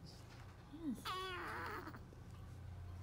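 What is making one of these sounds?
A baby makes soft cooing sounds.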